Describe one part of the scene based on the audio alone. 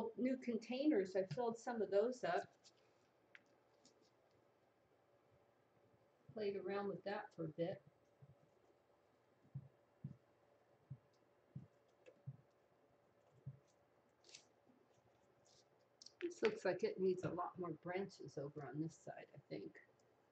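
A woman talks calmly and warmly close by.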